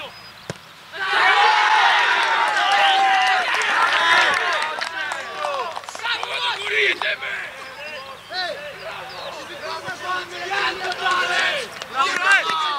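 Young men shout and cheer outdoors after a goal.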